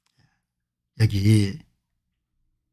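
An elderly man speaks briefly and calmly, close to a microphone.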